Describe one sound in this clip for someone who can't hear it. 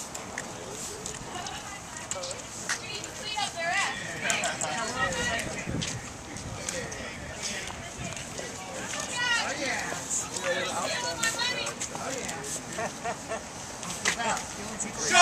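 Men and women talk and chatter nearby outdoors.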